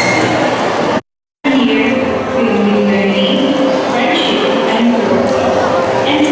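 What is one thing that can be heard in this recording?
A young woman sings through loudspeakers in a large echoing hall.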